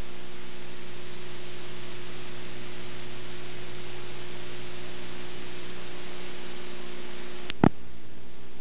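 A steady electrical hum and hiss comes from the tape playback.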